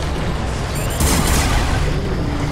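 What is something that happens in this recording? A gun fires a burst.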